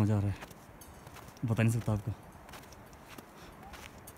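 Footsteps crunch in snow.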